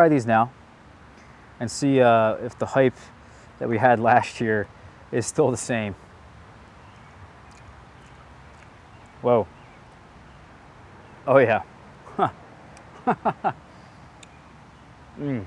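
A young man talks calmly outdoors, close by, in short bursts with pauses.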